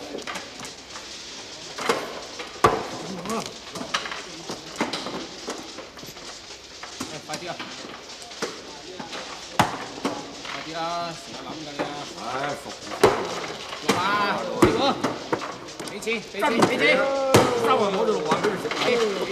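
Mahjong tiles clack and rattle on a table.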